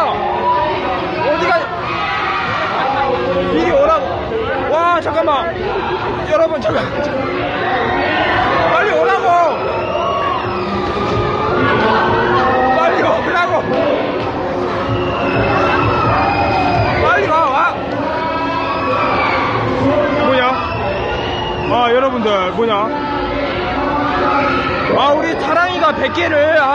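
A crowd of young people chatter and shout excitedly close by.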